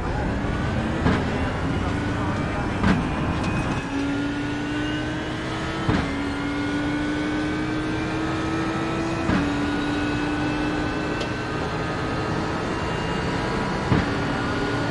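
Gear changes thump sharply as the engine climbs.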